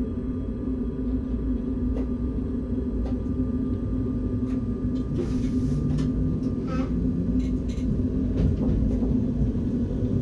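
Train wheels rumble and clack over the rails as the train pulls away.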